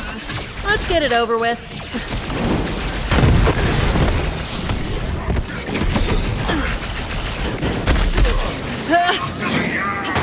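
Explosions boom with deep rumbles.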